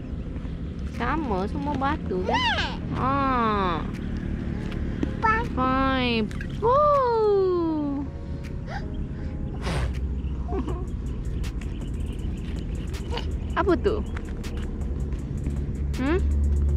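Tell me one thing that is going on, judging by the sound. A young girl speaks in a high, excited voice close by.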